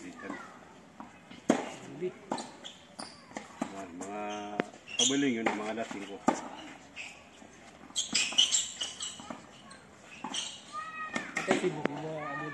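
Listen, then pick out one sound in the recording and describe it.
A tennis racquet strikes a ball outdoors.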